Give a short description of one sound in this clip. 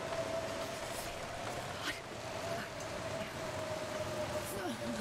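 A strong wind howls steadily through a snowstorm.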